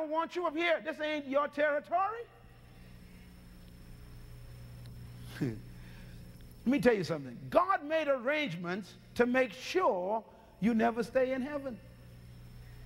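A man preaches with animation through a microphone.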